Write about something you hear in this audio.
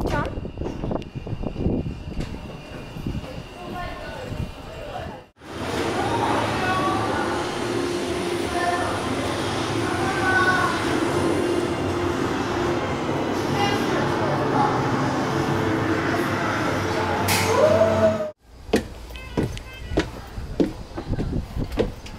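Footsteps tread steadily down hard stairs.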